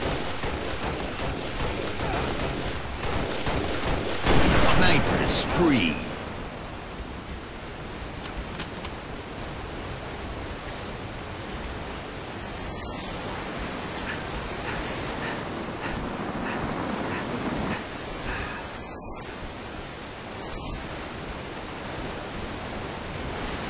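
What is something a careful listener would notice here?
Footsteps tap softly on a hard metal floor.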